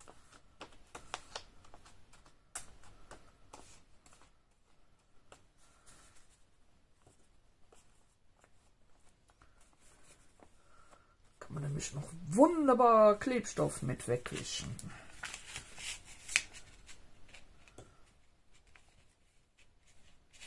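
Stiff paper crinkles and rustles as it is handled.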